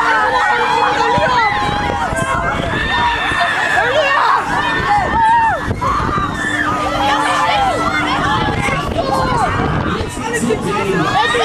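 Wind rushes past on a swinging fairground ride.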